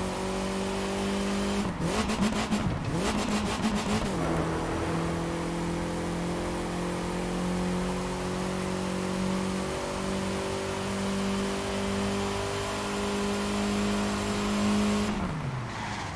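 A game car engine roars steadily at high revs.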